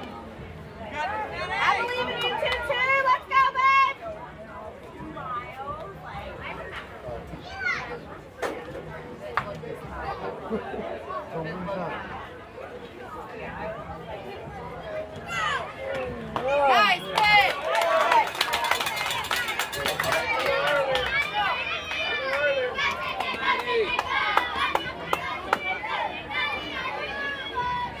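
Young girls cheer and chant loudly from close by.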